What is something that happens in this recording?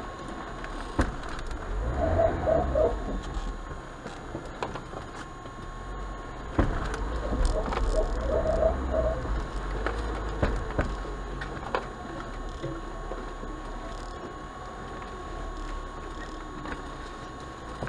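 Tyres bump and thud over rough ground.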